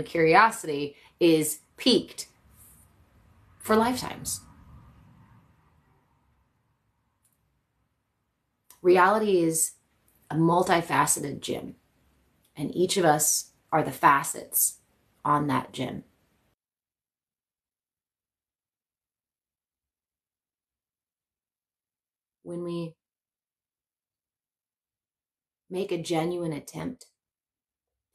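A young woman speaks calmly and close by, with long pauses.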